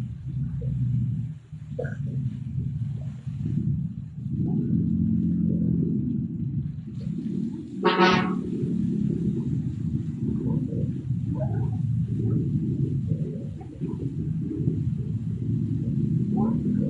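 Water jets of a fountain gush and splash steadily.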